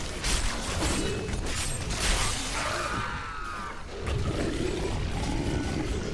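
Fiery magic spells whoosh and burst.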